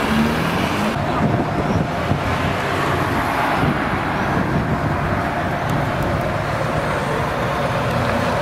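A sports car engine idles with a deep rumble nearby.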